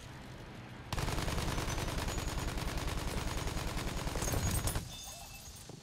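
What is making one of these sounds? Twin machine guns fire in rapid bursts.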